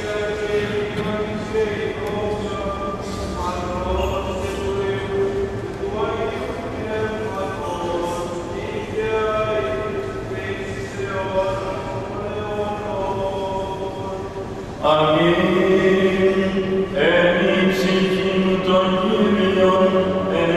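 Men chant a slow, drawn-out melody that echoes in a large hall.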